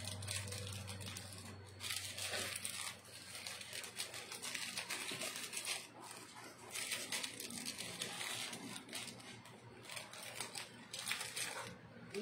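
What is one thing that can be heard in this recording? Fingers rub and crumble dry bits onto a plate with a soft rustle.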